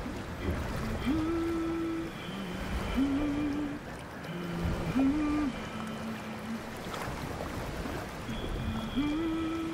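A young woman sings softly, holding long notes.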